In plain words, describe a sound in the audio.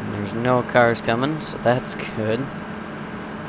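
A young man talks casually into a headset microphone.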